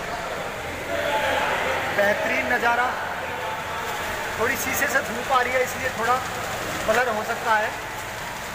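A man speaks close by in an echoing hall.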